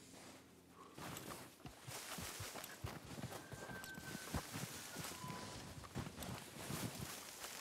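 Pine branches rustle and brush past.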